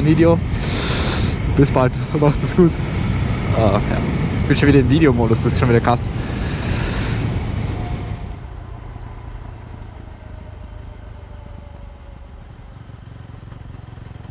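Wind buffets loudly against the rider.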